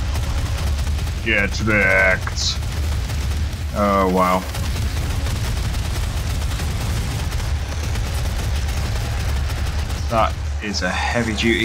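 A low steady rumble drones throughout.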